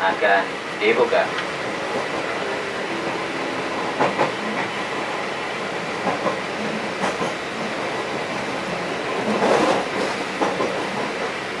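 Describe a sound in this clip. A vehicle engine hums and rumbles steadily while driving.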